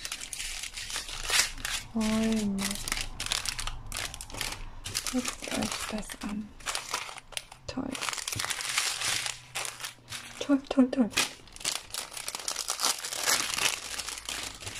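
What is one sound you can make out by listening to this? Plastic packaging crinkles and rustles close by as it is handled.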